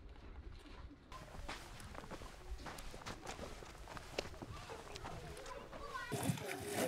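Hooves and footsteps crunch softly on dry ground.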